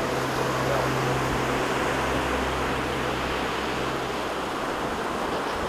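Waves wash onto a shore.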